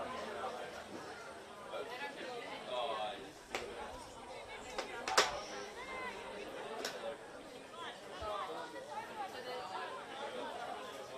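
Young women shout and call to each other across an open field.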